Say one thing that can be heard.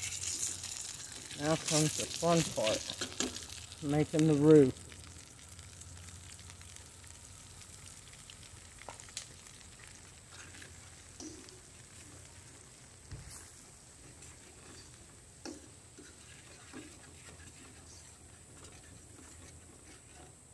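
A fork scrapes and taps against a metal pan.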